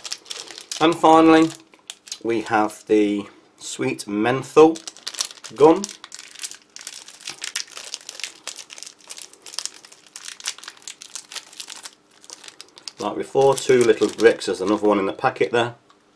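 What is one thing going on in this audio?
A plastic wrapper crinkles as hands open it.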